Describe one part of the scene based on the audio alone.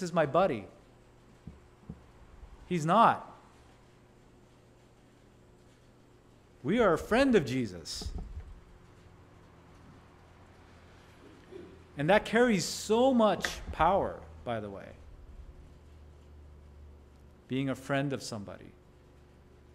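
A man speaks calmly into a microphone in an echoing room, with long pauses.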